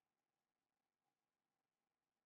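A stone block is set down with a soft thud.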